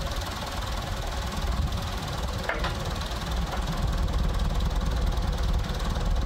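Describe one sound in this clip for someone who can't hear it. Tractor pallet forks scrape and clank against a wooden pallet.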